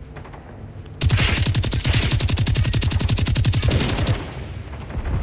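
An automatic rifle fires a long rapid burst.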